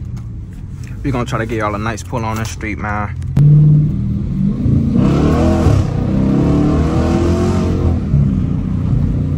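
A Hemi V8 muscle car engine revs hard at full throttle, climbing in pitch.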